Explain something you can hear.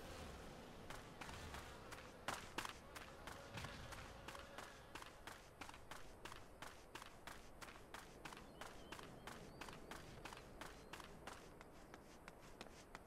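Footsteps patter steadily on dry ground.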